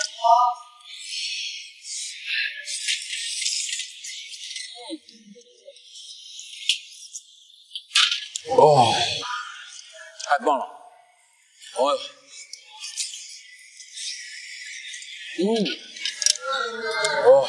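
Wet oysters are slurped from their shells.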